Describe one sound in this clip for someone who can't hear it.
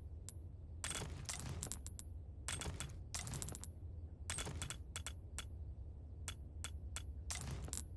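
Short video game menu clicks and chimes sound as the cursor moves between items.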